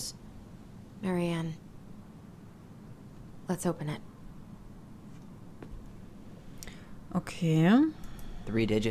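A young woman speaks calmly and close.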